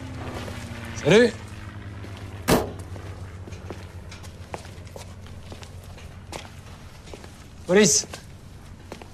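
A man calls out loudly from a distance.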